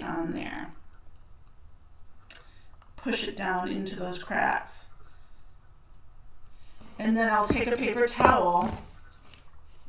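A woman talks calmly and casually, close to a microphone.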